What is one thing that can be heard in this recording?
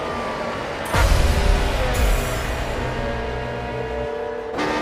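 A racing car roars past close by.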